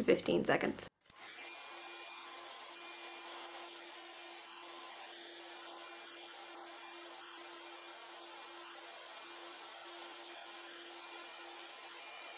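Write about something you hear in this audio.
A hair dryer blows steadily and quietly.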